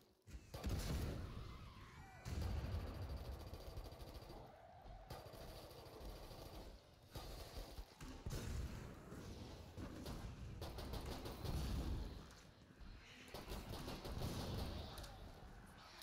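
Heavy gunfire booms in loud bursts.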